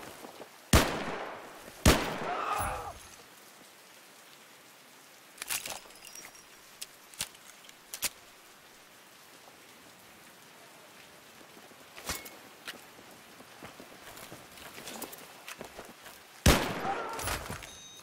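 Pistol shots crack loudly, a few at a time, with a short echo.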